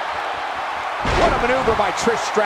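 A body slams onto a wrestling ring mat with a heavy thud.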